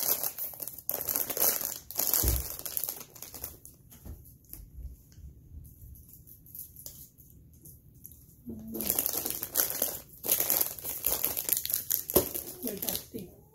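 A plastic snack wrapper crinkles and rustles.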